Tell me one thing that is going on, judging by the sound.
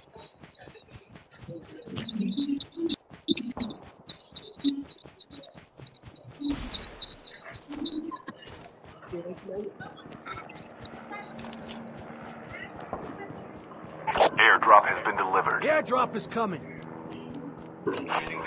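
Running footsteps fall on grass.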